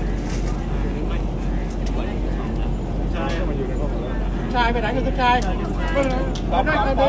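A man speaks loudly through a microphone and loudspeaker.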